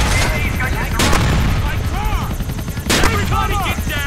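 Helicopter rotors thump overhead.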